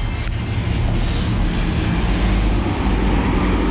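A bus engine rumbles as it drives past close by.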